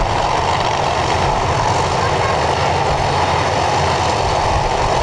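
Drag racing car engines idle with a loud, rough rumble.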